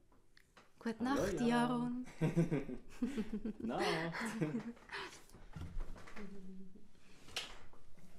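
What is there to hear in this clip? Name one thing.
A young woman laughs and talks close to a microphone.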